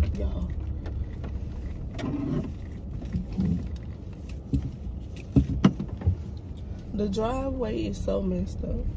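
A car engine hums low and steady inside the cabin.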